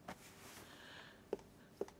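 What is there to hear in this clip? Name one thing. Clothes rustle as they are handled.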